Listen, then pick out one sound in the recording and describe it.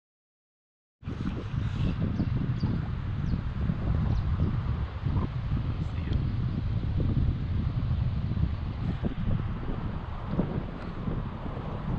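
A river flows and ripples gently.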